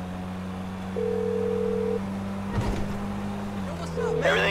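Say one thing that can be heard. A phone gives a short electronic ring.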